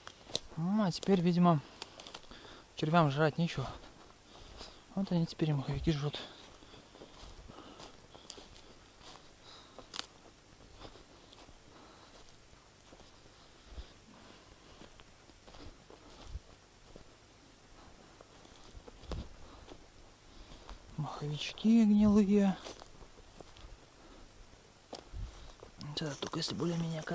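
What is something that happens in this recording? Quick footsteps rustle through low undergrowth.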